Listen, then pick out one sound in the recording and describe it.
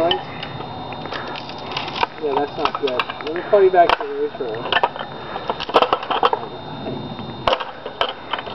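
Wooden chair pieces crack and clatter as a man breaks them apart.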